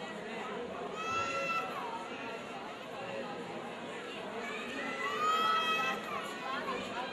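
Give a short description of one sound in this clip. Men in a crowd shout loudly in long, drawn-out cries.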